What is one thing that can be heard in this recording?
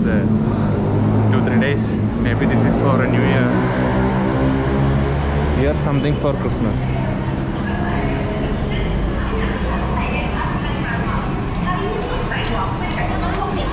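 A crowd murmurs and walks in a hall.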